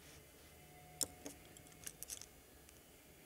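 Small plastic pots click and knock on a table.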